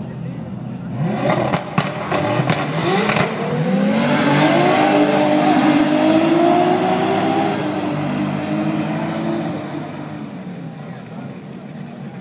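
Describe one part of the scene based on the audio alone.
Race car engines roar loudly as the cars launch and speed away, fading into the distance.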